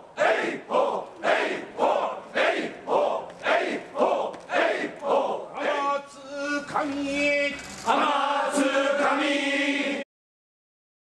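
A large crowd of men and women chants loudly in rhythmic shouts outdoors.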